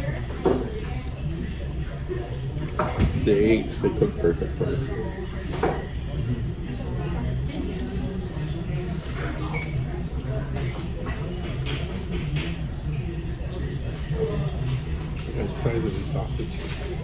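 A metal fork scrapes and clinks on a plate.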